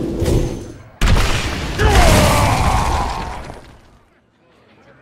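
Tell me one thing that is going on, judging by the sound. A game's spell effect crashes and crackles loudly.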